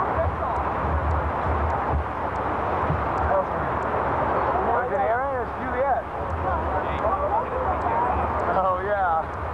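Strong wind blows and rumbles against the microphone outdoors.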